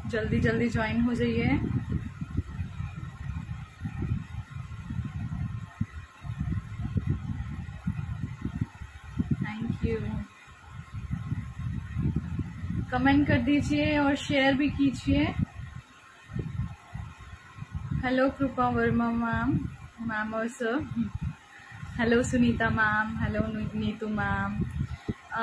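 A young woman talks with animation close to the microphone, in bursts with pauses.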